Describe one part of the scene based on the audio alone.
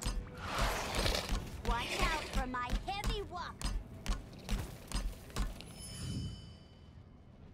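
Magic blasts crash and whoosh in quick bursts during a fight.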